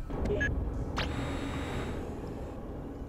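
A machine whirs briefly.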